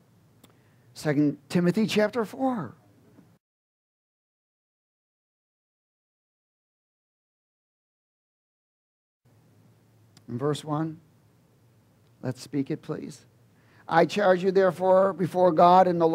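A middle-aged man speaks calmly through a microphone, with pauses.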